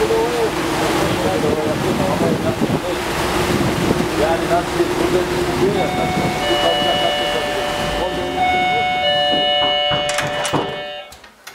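Water churns and splashes behind a moving boat.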